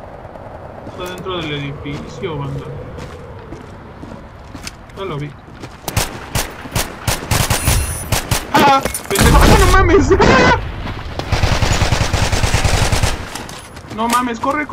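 A young man talks excitedly into a nearby microphone.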